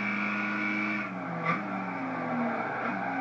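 A car engine drops in pitch as the car slows for a bend.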